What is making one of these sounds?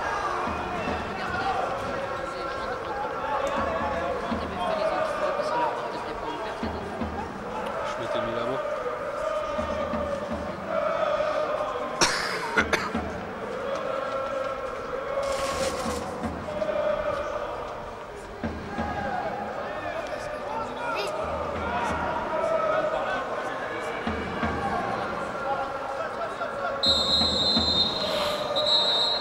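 A crowd of spectators chatters nearby in an open stadium.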